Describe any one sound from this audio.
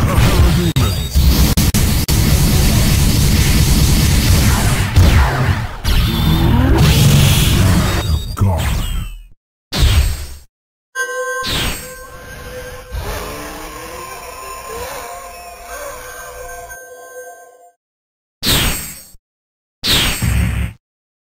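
Punches and blasts from a fighting game hit rapidly with loud impacts.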